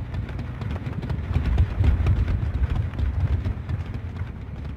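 A generator engine rumbles and clatters nearby.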